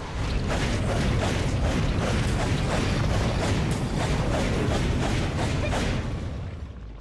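Weapon blows land in a quick, steady rhythm of swishing strikes.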